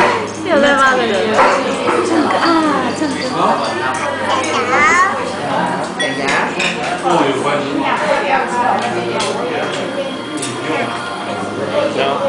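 A toddler babbles and coos close by.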